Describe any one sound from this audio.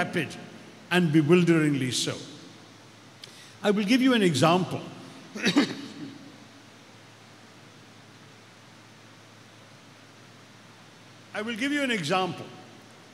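An elderly man speaks calmly into a microphone over loudspeakers, with pauses between phrases.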